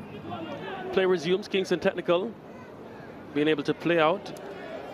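Spectators shout from the stands.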